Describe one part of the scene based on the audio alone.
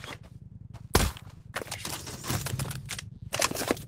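A pistol fires.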